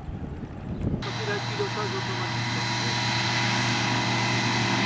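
A biplane's engine hums steadily nearby.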